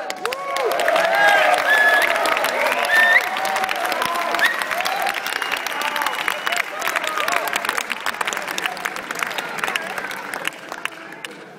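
A crowd cheers, whistles and shouts loudly in a large hall.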